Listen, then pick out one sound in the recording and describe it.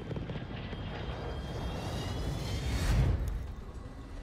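Flares pop and crackle around an aircraft.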